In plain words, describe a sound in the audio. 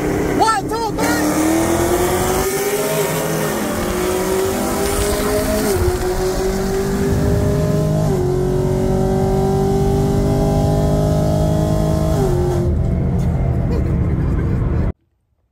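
A car engine roars as it accelerates hard, its pitch climbing and dropping with each gear shift.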